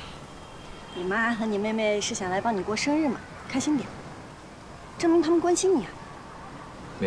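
A young woman speaks softly and gently, close by.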